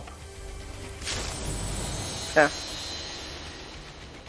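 A treasure chest opens with a bright shimmering chime.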